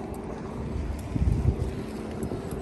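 A bicycle rolls past on a paved path.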